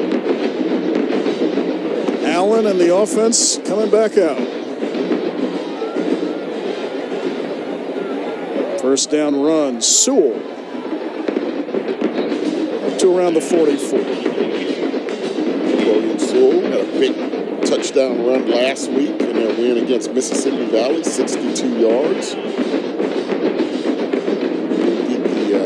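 A large crowd cheers and murmurs outdoors in a stadium.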